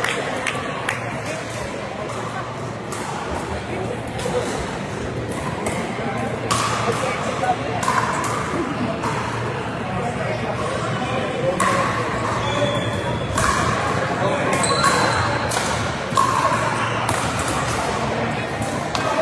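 Adult men and women call out and chat at a distance across the hall.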